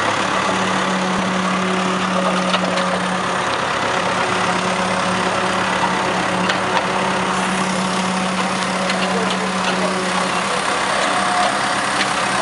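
Hydraulics on a backhoe loader whine as the front bucket lifts.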